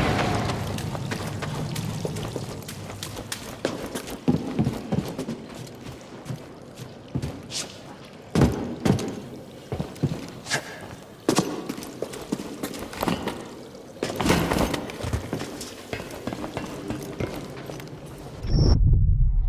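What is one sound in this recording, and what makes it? Footsteps thud and scrape on rock and metal.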